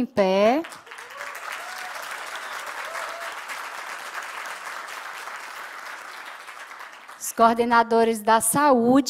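A woman speaks calmly into a microphone, heard through loudspeakers in a large hall.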